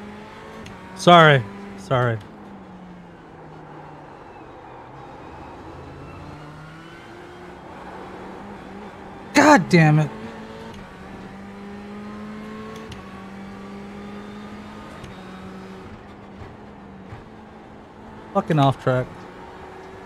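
A racing car engine roars loudly in short bursts as gears change.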